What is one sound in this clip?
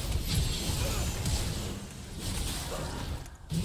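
Game spell effects crackle and clash in a fast fight.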